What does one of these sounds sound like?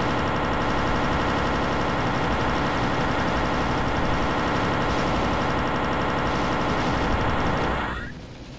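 A video game plasma gun fires rapidly, buzzing and crackling.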